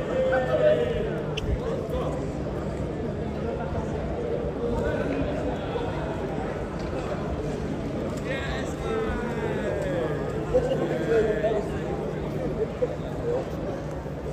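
Young men and women chatter and talk nearby.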